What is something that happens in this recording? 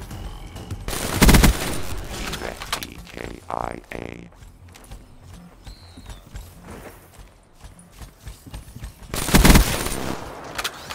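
A rifle fires a short, loud burst of gunfire in a video game.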